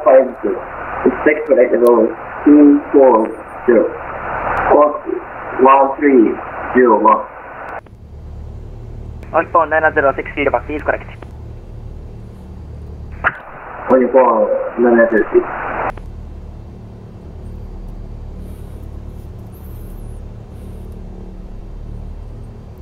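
A small propeller plane's engine idles with a low, steady hum.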